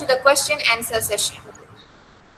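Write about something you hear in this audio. A young woman speaks through an online call.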